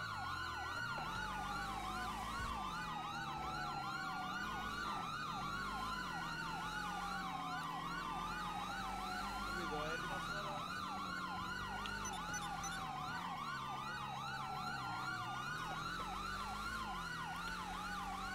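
Several police sirens wail and yelp together, close by.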